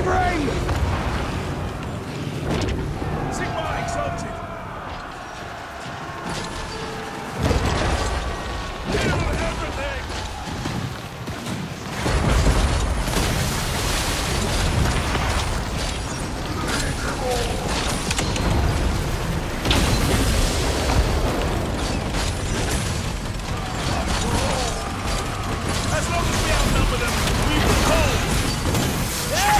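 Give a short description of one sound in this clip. A battle rumbles on with loud crashing and fighting noise.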